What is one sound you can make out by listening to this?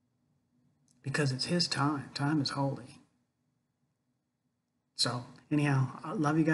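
An older man speaks calmly, close to the microphone.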